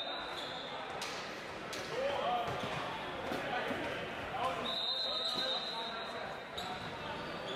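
A ball is struck with sharp slaps.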